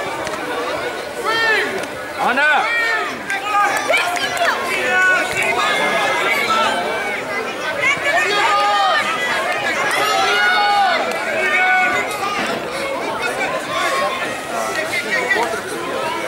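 Young children shout and cheer excitedly outdoors.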